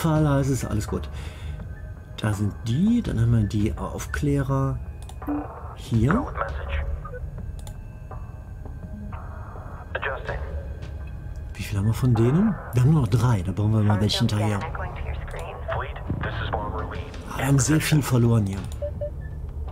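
A middle-aged man talks calmly and casually into a close microphone.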